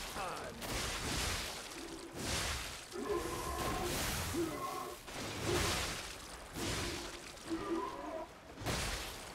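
Metal weapons clash and strike with heavy thuds.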